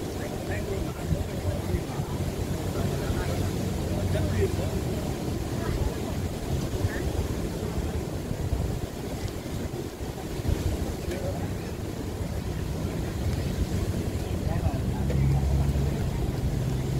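Wind blows steadily outdoors, rumbling low.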